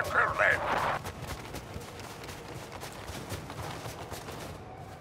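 Boots thud in quick running footsteps on a hard floor.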